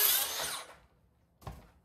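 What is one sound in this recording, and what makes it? A circular saw whines through wood and stops.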